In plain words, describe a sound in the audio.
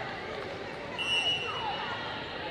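A whistle blows shrilly once.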